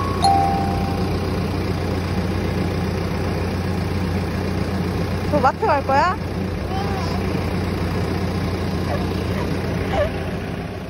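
A bus engine idles with a steady low hum nearby.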